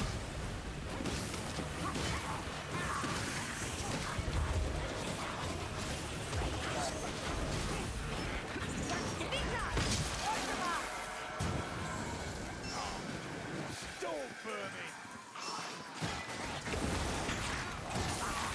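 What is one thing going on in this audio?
Flames roar and burst in fiery blasts.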